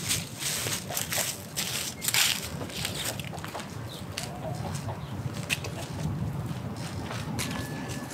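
Dry leaves rustle underfoot as a person walks.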